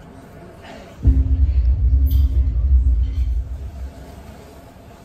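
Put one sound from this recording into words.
A bass drum thumps heavily.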